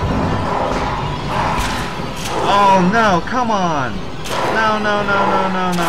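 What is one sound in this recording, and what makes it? A wolf snarls and growls loudly.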